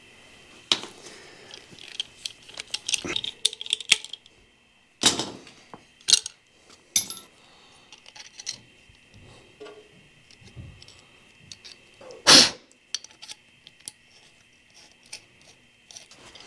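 Metal tools click and clank against a metal box.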